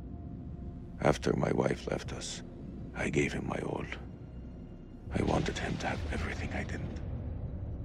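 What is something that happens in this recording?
A young man speaks quietly and gravely, close by.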